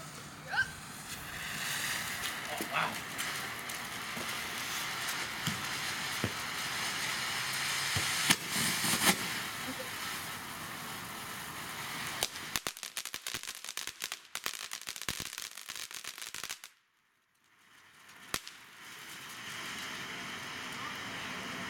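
A firework fountain hisses and roars steadily.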